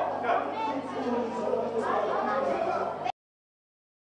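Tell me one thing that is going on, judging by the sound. A crowd of children and adults chatter and call out in a busy indoor hall.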